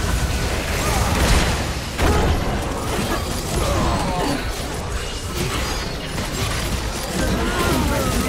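Game spell effects crackle and zap in quick bursts.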